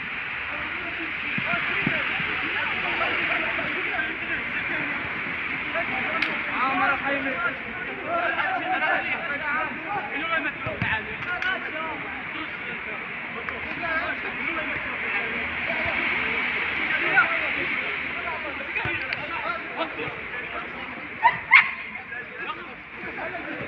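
Young men shout and call out to each other across an outdoor pitch.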